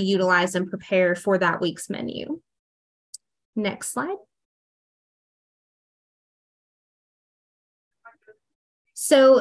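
A woman speaks calmly over an online call, pausing now and then.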